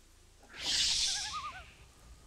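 A chicken squawks.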